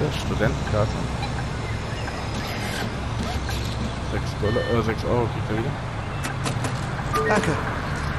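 A ticket machine beeps as buttons are pressed.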